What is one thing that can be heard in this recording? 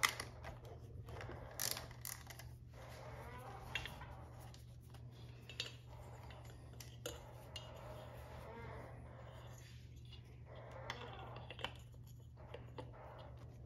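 Cables rustle and tick as hands move them about.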